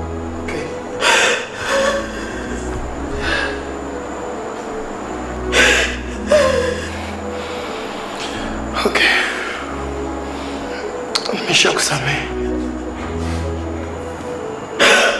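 A young woman sobs.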